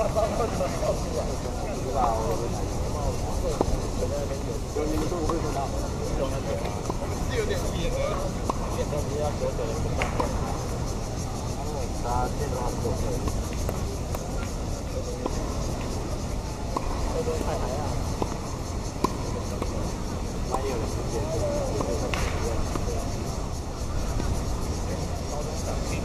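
Tennis rackets strike a ball in a rally outdoors.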